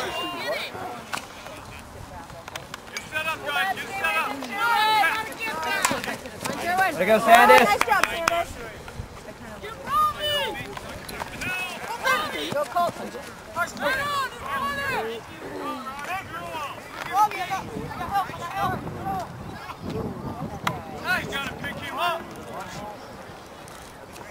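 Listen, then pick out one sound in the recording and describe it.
Teenage boys shout and call out excitedly across an open field.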